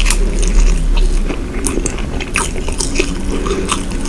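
A flaky croissant crunches and crackles as it is torn apart close by.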